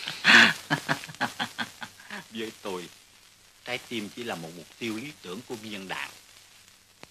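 A man speaks louder, heard in a slightly echoing room.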